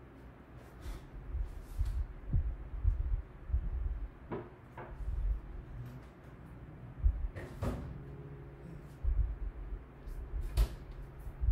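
Footsteps thud softly in a quiet room.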